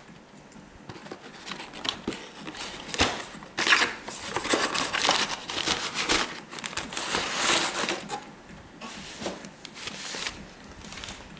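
Paper and cardboard rustle and scrape as a hand digs into a box.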